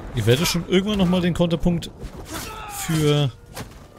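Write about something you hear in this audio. Swords clash and strike.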